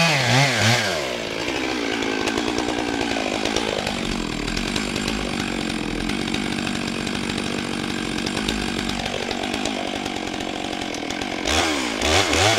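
A chainsaw engine idles with a steady rattling putter.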